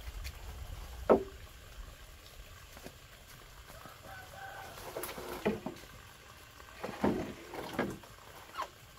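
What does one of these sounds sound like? Bamboo poles knock and clatter against each other.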